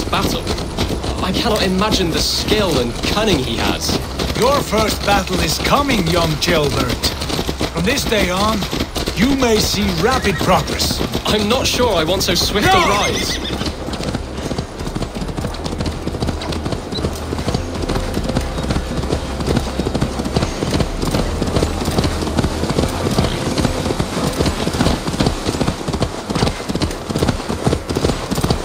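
Horse hooves clop steadily on a dirt path.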